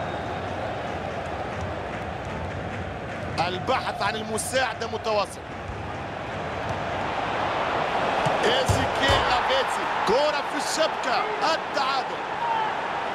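A large crowd cheers and roars in a stadium, swelling louder.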